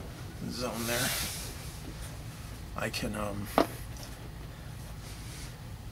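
A cardboard box slides and rustles on a tabletop.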